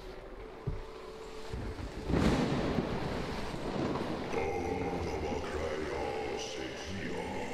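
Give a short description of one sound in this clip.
A strong wind gusts and rushes.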